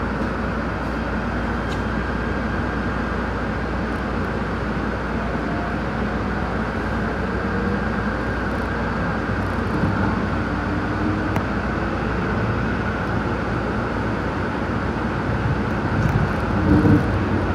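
Train wheels squeal and whine on the track.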